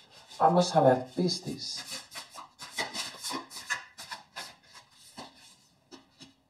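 Cards riffle and flick as a deck is shuffled by hand.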